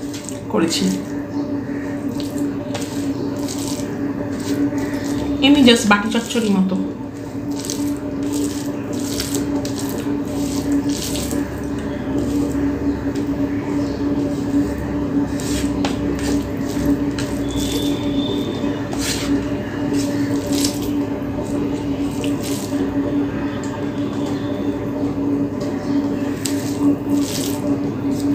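Bare fingers squish and mix rice and curry on a plate.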